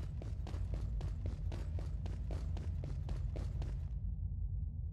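Boots thud steadily on a hard floor with quick footsteps.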